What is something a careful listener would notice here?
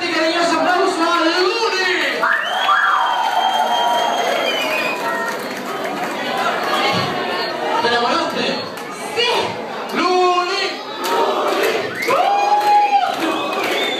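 A crowd cheers and shouts loudly in a large, echoing club.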